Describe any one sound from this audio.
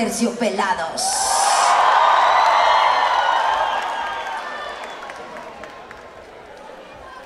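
A crowd cheers and screams.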